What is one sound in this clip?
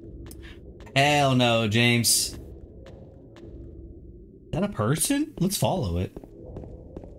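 A young man speaks with animation into a nearby microphone.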